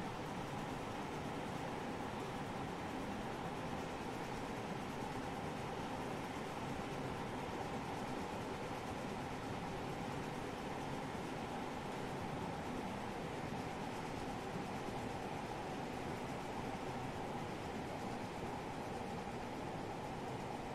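A steam train rumbles steadily along the rails.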